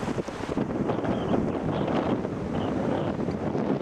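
A shorebird gives short piping calls.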